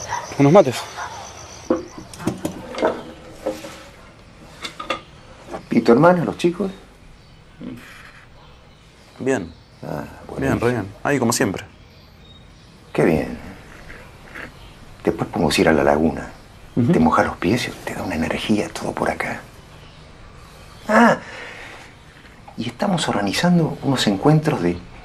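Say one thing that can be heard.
A young man speaks quietly in reply.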